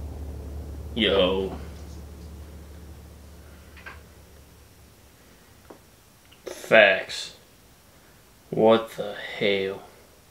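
A young man speaks quietly and briefly, close by.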